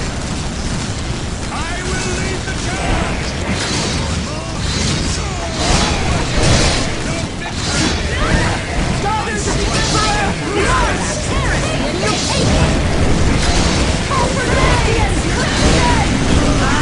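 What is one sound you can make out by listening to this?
Swords clash and clang in a busy battle.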